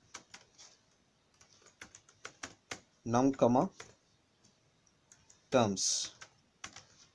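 Keys clatter as someone types on a keyboard.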